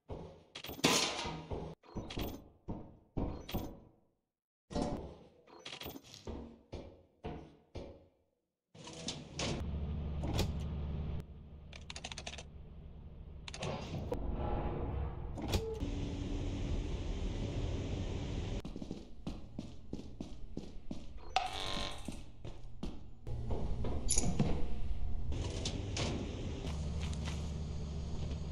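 Footsteps clang on a metal grating.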